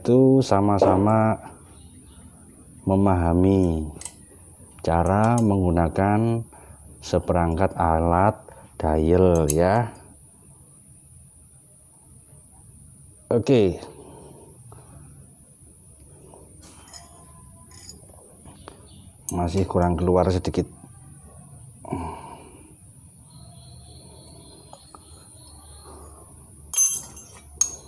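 Metal parts click softly as an engine is turned by hand.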